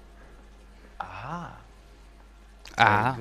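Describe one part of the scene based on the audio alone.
A man speaks in short, strained bursts, close by.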